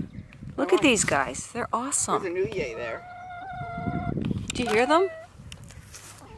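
Hens cluck and squawk close by.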